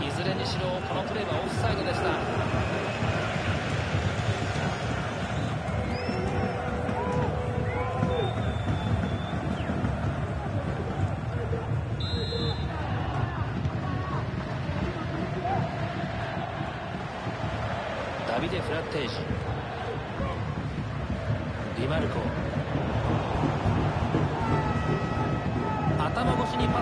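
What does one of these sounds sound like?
A large stadium crowd roars and chants steadily.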